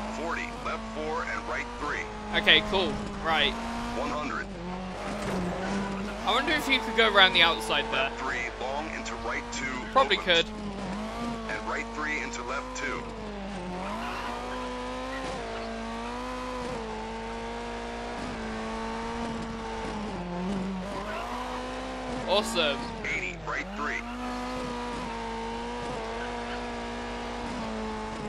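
A rally car engine drones and revs, rising and falling with each gear change.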